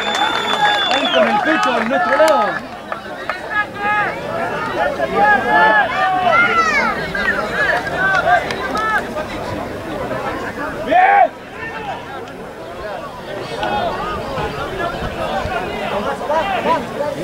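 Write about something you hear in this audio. Rugby players shout to each other outdoors on an open field.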